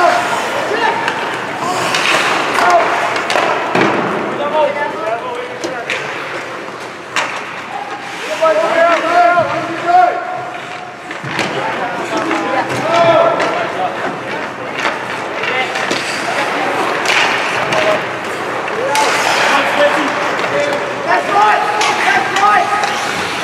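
Hockey sticks clack against the puck and ice.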